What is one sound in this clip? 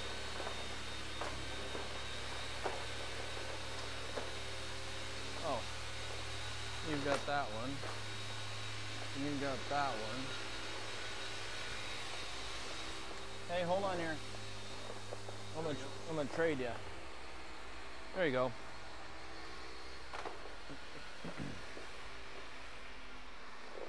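Cloths rub and squeak on a car's body.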